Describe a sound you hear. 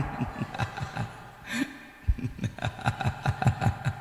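A middle-aged man laughs heartily into a microphone.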